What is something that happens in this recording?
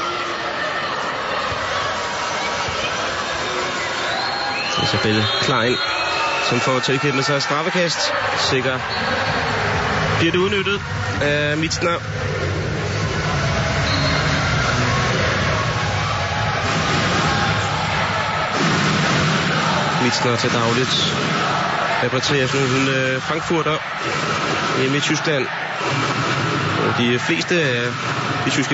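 A large crowd cheers and roars in an echoing hall.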